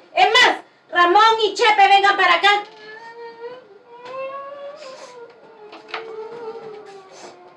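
A middle-aged woman speaks with emotion, close by.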